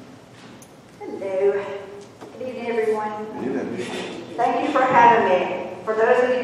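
A second woman speaks into a microphone over loudspeakers in a large echoing room.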